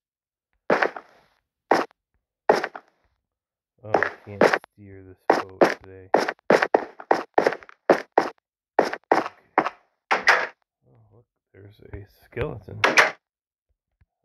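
A pickaxe chips at stone blocks with quick, sharp cracks.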